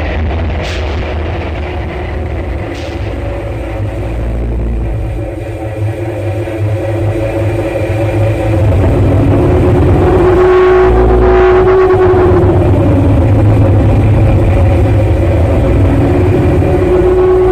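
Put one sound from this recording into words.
Harsh electronic noise drones and swells louder.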